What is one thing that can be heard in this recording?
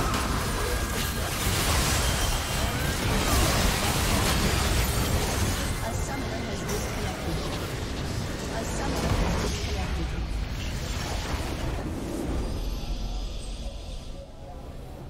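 Game spell effects and explosions crash loudly in a busy battle.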